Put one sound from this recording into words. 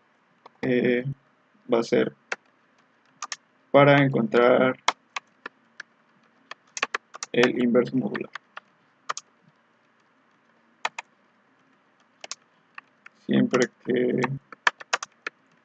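Keys click on a keyboard as someone types.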